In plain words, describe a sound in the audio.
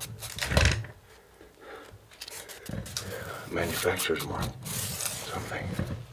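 A hand brushes across a rough, dusty stone surface.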